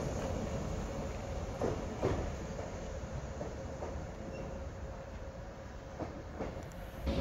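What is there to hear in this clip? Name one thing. A train rumbles away along the tracks and slowly fades.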